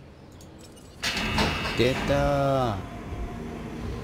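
A heavy metal gate rumbles as it slides open.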